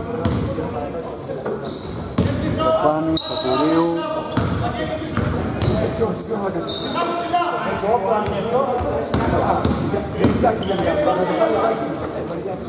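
Sneakers squeak on a court.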